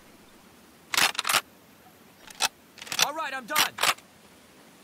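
Metal parts of a gun clack as it is reloaded.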